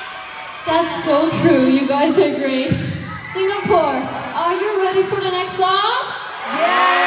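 A young woman speaks with animation into a microphone, amplified through loudspeakers.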